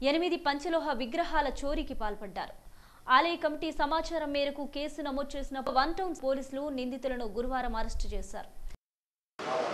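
A woman reads out calmly and clearly, close to a microphone.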